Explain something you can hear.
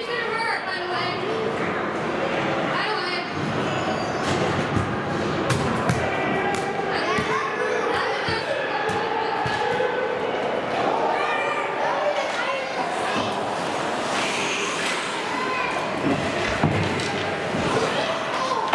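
Young players shout and call out across a large echoing rink.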